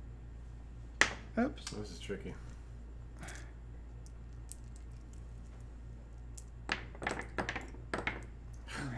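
Game pieces clatter onto a tabletop.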